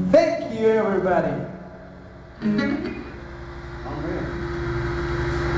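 A young man sings into a microphone in an echoing room.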